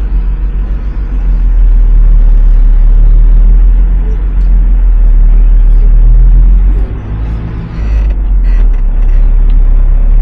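A vehicle engine hums steadily while driving over sand.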